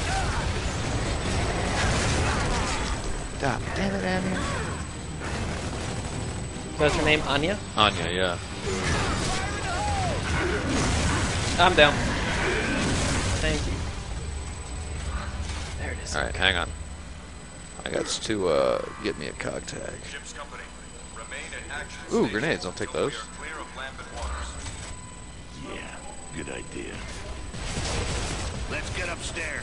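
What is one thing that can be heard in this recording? Gunfire and explosions boom from a video game.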